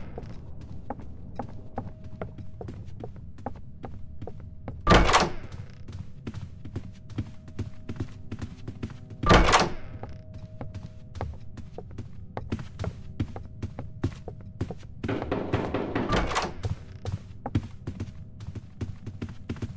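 Footsteps patter quickly on a wooden floor.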